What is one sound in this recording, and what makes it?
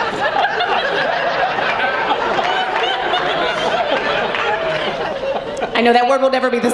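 A woman laughs with emotion near a microphone.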